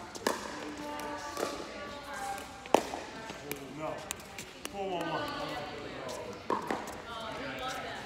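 Men talk and call out casually in a large echoing hall.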